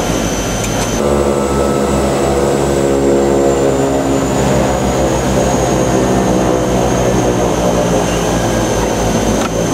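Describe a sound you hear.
Propeller engines roar steadily, heard from inside the plane's cockpit.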